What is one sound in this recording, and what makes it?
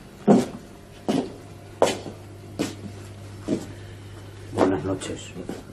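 Footsteps knock on a wooden stage floor.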